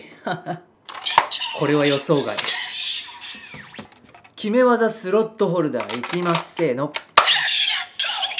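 Plastic parts click and snap as a toy is handled.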